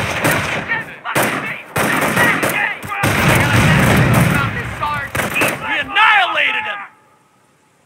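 Gunfire and explosions crackle and boom in a battle.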